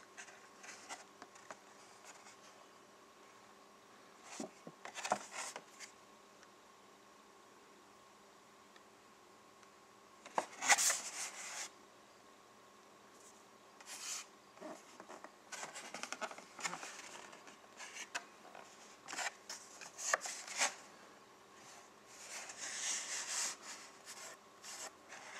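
Stiff plastic packaging crinkles and crackles as hands handle it.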